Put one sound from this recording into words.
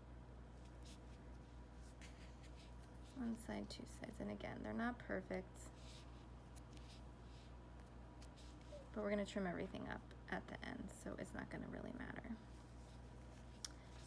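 Paper crinkles softly as fingers fold it.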